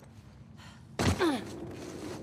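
A heavy thud sounds as a body lands from a drop.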